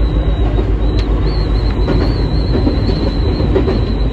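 Train wheels click and clack over rail joints.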